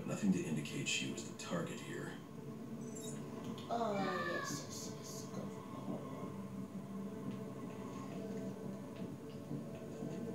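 A television plays a low, steady humming background sound.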